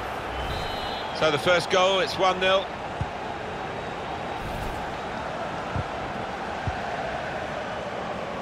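A large stadium crowd murmurs steadily.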